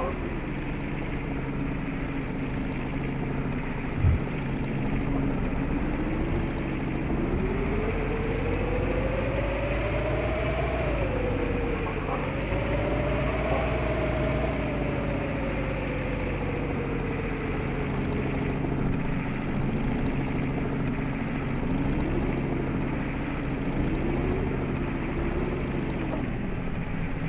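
A bus engine drones, rising and falling in pitch as it speeds up and slows down.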